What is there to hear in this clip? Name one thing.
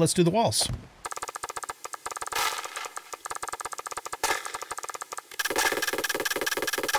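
A tool taps rapidly and repeatedly against a block.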